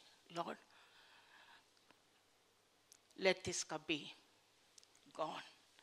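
A middle-aged woman speaks calmly into a microphone, heard through a loudspeaker in a room with some echo.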